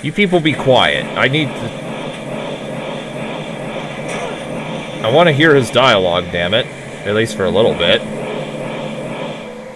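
Bursts of fire roar and crackle.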